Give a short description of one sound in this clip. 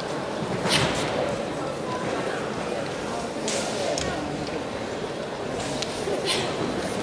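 A crowd murmurs steadily in the background.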